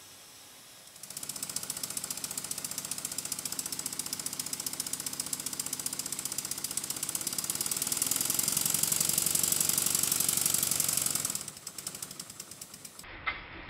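A small steam engine chuffs rapidly and steadily, speeding up and then slowing down.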